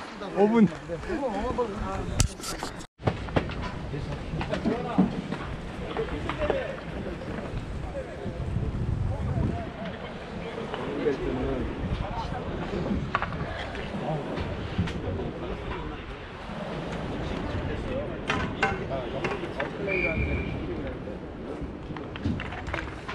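Young people talk nearby outdoors.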